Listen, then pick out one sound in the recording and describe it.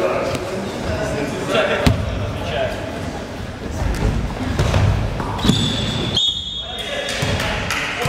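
A crowd of young spectators murmurs in the background.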